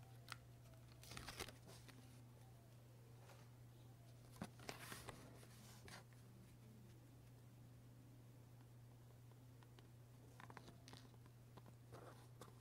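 Paper rustles and slides softly under fingers, close by.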